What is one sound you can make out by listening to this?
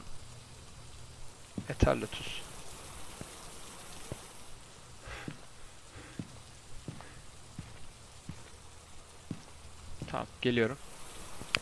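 Rain falls steadily outside.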